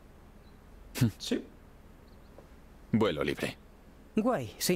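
A young man speaks briefly and calmly, close to a microphone.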